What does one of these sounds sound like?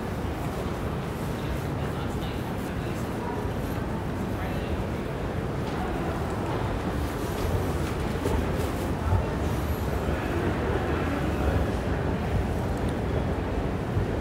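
A murmur of distant voices fills a large echoing hall.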